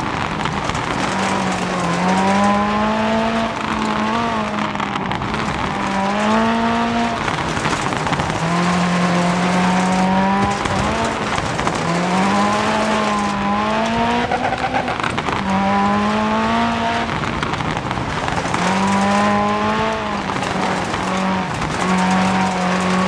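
A rally car engine revs hard, rising and falling as the gears shift.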